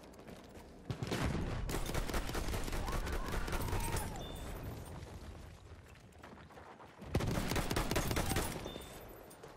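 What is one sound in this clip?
A shotgun fires loudly, with sharp blasts.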